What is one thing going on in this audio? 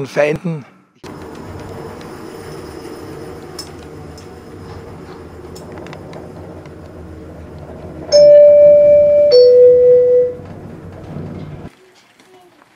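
An incline lift hums steadily as it climbs.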